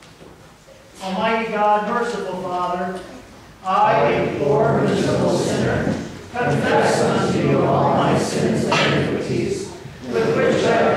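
A man recites a prayer slowly and solemnly in an echoing hall.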